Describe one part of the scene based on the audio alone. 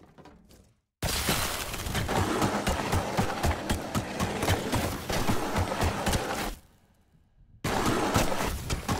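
Quick footsteps patter as a video game character runs.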